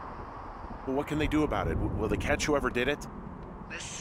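A man speaks calmly into a walkie-talkie.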